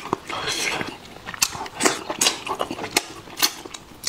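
Fingers tear meat apart with wet squelching sounds.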